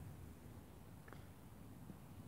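A golf club strikes a ball far off.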